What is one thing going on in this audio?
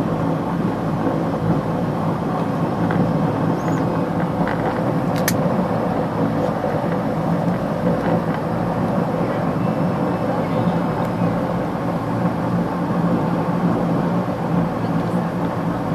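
Tyres rumble over a concrete runway.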